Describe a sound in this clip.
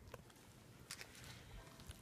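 A dog licks noisily up close.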